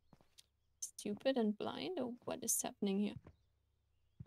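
A young woman speaks casually and close to a microphone.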